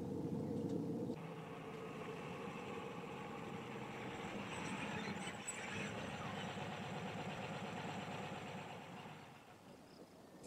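A van engine hums as the van drives along a dirt road.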